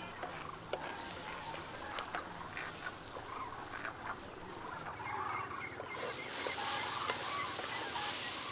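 Vegetables sizzle softly in a pan over a fire.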